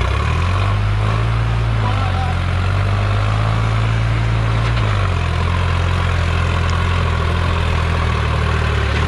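Tractor tyres crunch over dry, loose soil.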